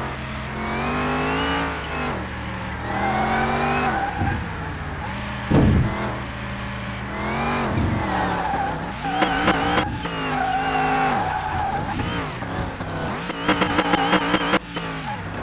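A car engine revs up and down hard, with quick gear changes.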